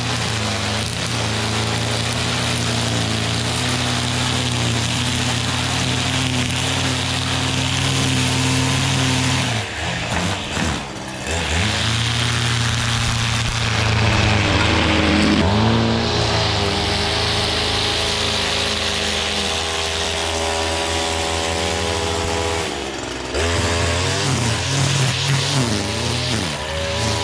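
A string trimmer whines steadily close by, with its motor rising and dipping in speed.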